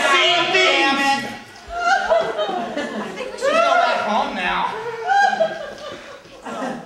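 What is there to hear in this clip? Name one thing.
A young woman sings into a microphone, heard through loudspeakers in a room.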